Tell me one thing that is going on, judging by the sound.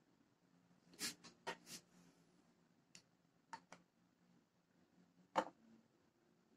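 Plastic tubes knock sharply against a table as they are set down.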